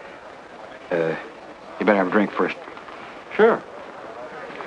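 A man speaks in short lines close by.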